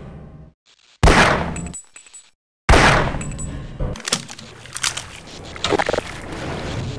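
Water splashes loudly in bursts.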